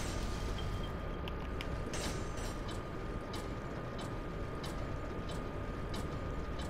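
A heavy mechanism rumbles low and steadily.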